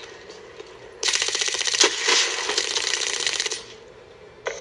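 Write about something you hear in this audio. A rifle fires in a rapid burst.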